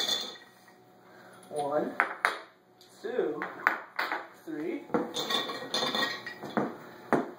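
Coins clink into a glass jar.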